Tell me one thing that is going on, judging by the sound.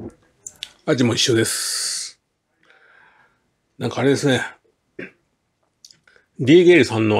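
A middle-aged man speaks close to the microphone in short bursts.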